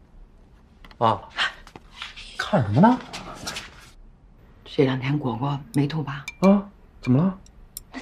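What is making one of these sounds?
A young man asks a question with concern.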